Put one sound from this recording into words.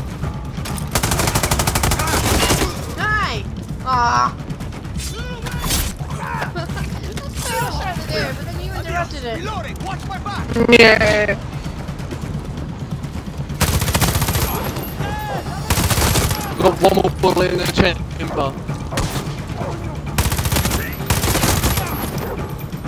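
An automatic rifle fires rapid bursts close by.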